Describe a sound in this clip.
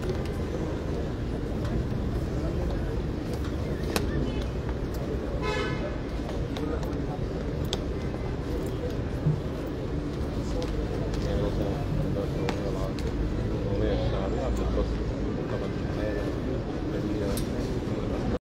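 A crowd of men and women murmur and chatter outdoors.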